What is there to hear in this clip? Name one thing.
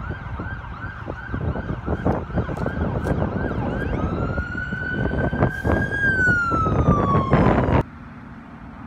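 An ambulance siren wails and yelps loudly nearby.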